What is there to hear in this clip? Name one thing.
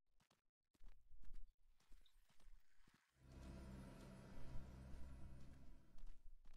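Hooves thud on the ground as an animal walks.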